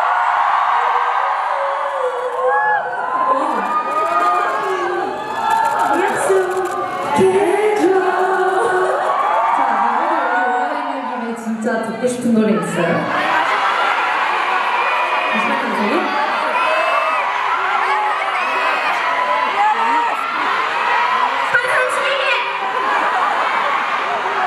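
Young women talk and laugh through microphones over loudspeakers in a large, echoing hall.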